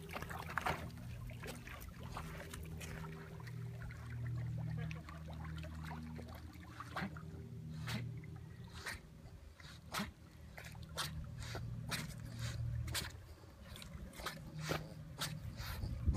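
Dogs paddle and splash through water.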